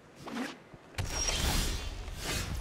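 A video game's sound effect swells with a bright whoosh as a new turn begins.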